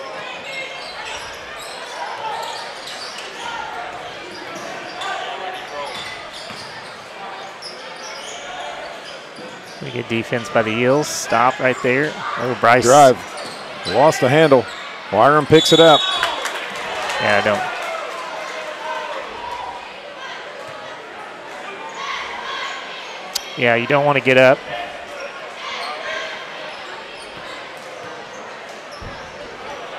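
A crowd murmurs and chatters in a large echoing gym.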